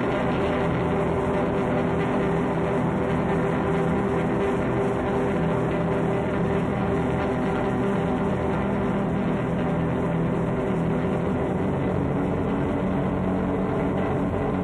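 Electric guitars play a loud, droning piece through a large hall's speakers.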